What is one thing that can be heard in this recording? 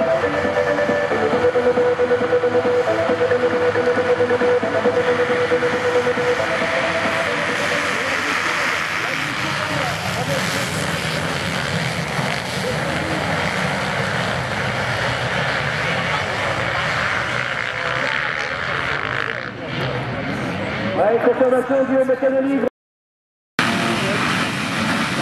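Many motorcycle engines rev loudly at once.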